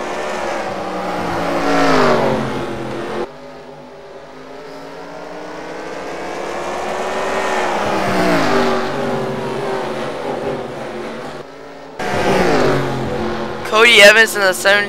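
Racing car engines roar and whine as they speed past.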